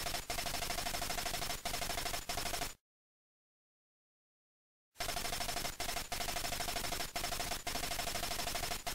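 Rapid electronic beeps chatter in a fast, even rhythm as text types out.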